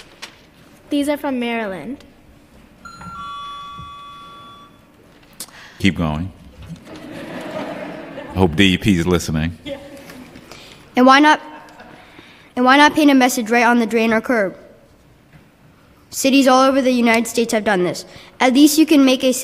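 A young girl speaks calmly into a microphone.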